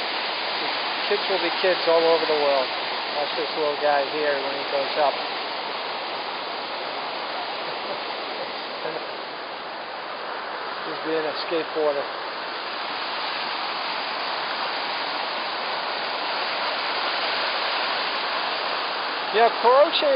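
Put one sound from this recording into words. A woman speaks nearby in short bursts.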